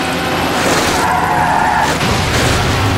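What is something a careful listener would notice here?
Tyres screech as a car slides through a bend.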